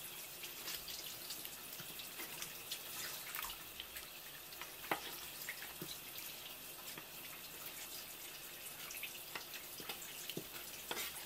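Water runs steadily from a tap onto a wet surface.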